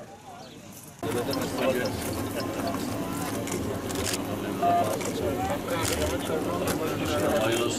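A crowd of men murmur and talk nearby.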